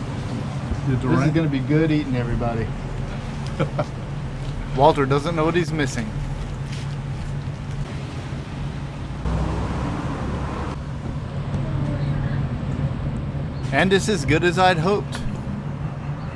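A middle-aged man talks cheerfully nearby.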